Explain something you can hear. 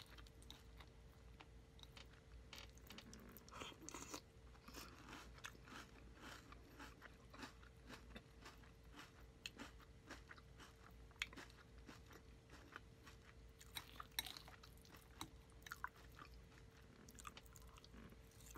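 A spoon clinks and scrapes in a glass bowl.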